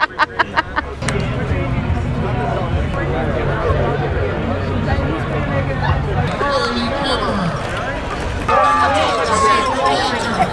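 A crowd chatters outdoors.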